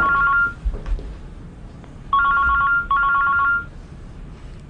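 A phone rings close by in repeated bursts.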